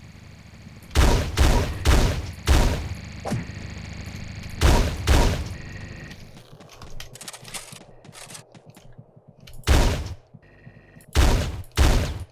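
A shotgun fires loud booming blasts in quick bursts.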